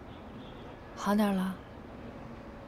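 A young woman asks a short question quietly.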